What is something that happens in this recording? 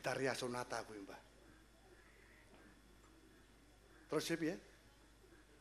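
A man speaks through a microphone in short bursts.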